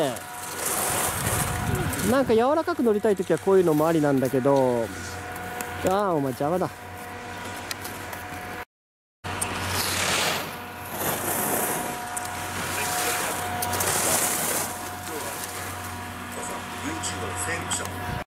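Skis carve and hiss across hard snow.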